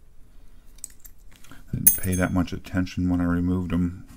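A plastic keycap clicks as it is pried loose.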